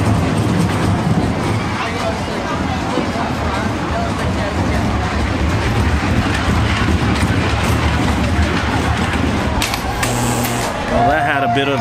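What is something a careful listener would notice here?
Roller coaster cars rumble and clatter along a track.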